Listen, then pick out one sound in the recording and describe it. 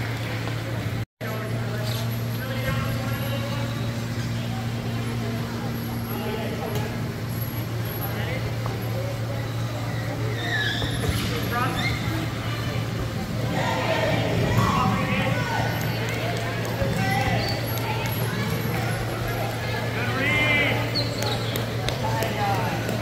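Electric wheelchairs whir across a large echoing hall.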